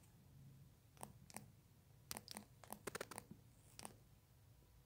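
Soft keyboard taps click quickly.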